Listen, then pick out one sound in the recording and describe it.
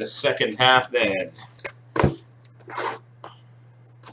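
Cardboard boxes rustle and knock as hands move them.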